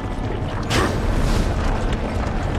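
A burst of fire whooshes up.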